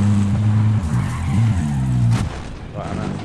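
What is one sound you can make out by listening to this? A vehicle engine rumbles loudly, then stops.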